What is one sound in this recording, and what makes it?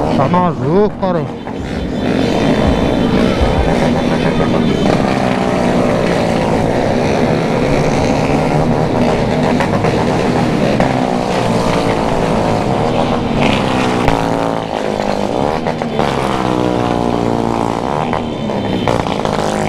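A motorcycle engine hums close by, rising and falling in pitch as it speeds up and slows down.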